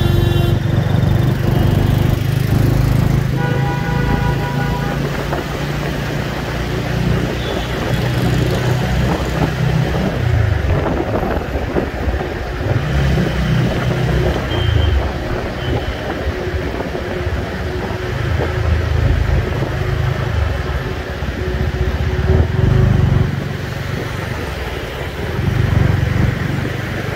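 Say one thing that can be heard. Wind rushes past loudly outdoors.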